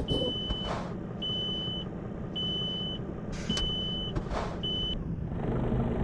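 A truck's reversing alarm beeps repeatedly.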